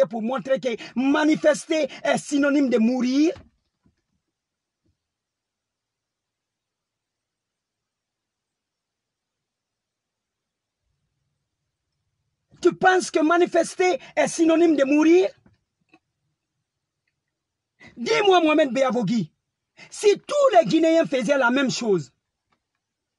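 A man speaks with animation close by, in bursts separated by long silences.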